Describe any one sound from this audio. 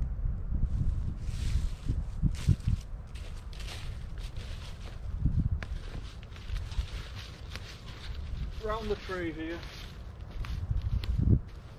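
Dry leaves crunch underfoot as a man walks.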